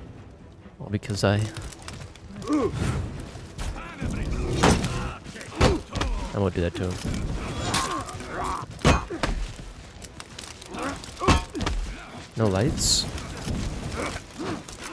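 Metal weapons clash and thud in a fight.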